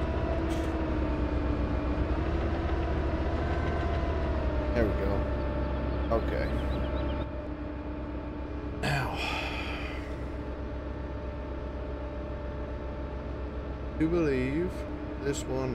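A heavy diesel engine hums steadily.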